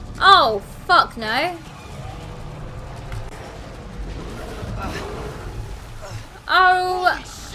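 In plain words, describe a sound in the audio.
A young woman speaks with animation into a microphone, her voice squealing high.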